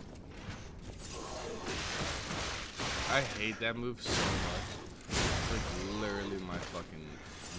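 Swords clash during a fight.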